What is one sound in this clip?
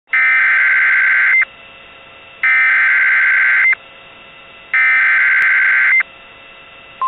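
A weather radio blares three harsh, buzzing data bursts.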